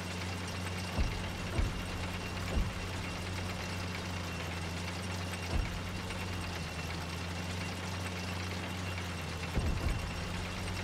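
Metal clanks and thuds as a vehicle bumps over rough ground.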